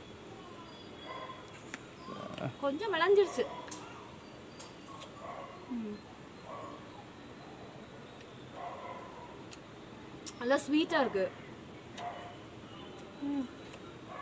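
A woman bites into crunchy fruit.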